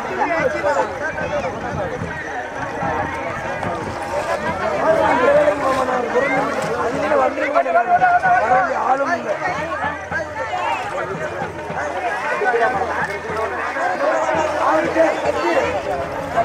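A group of women sing together outdoors.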